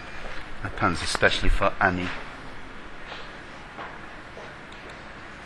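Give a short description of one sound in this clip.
A middle-aged man speaks calmly and close, as if into a headset microphone.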